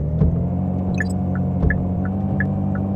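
A car's turn signal ticks.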